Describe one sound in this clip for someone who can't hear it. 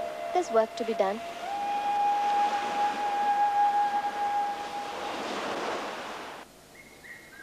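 Waves wash onto a rocky shore.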